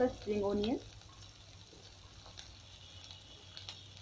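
Chopped vegetables drop into hot oil.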